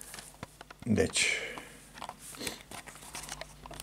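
A pen scratches and scrapes on paper.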